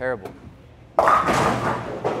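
Bowling pins crash and clatter.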